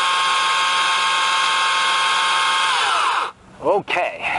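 A chainsaw motor runs steadily with a high whine, then cuts off.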